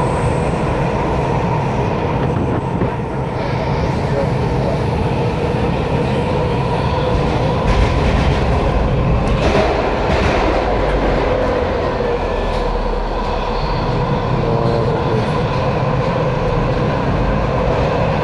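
A subway train rumbles and whines through a tunnel, heard from inside the car.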